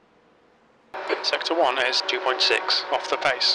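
A man speaks loudly and with animation through a microphone.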